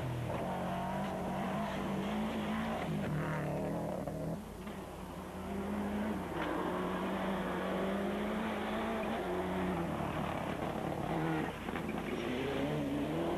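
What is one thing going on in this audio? Tyres crunch and skid on gravel.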